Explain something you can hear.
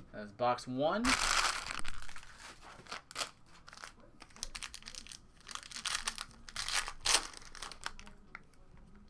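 Foil wrapping crinkles and tears as a pack is opened.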